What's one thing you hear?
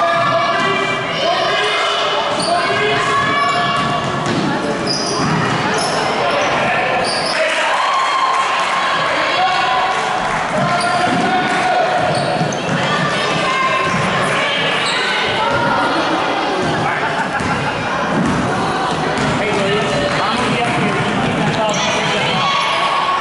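A basketball bounces on a hard wooden floor.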